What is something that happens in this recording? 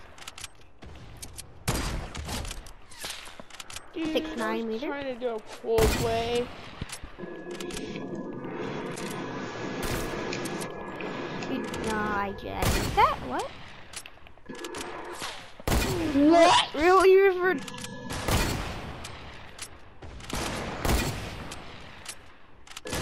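Gunshots crack sharply, again and again.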